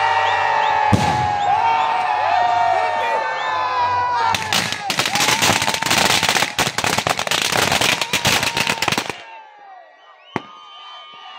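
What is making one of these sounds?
A firecracker bangs sharply.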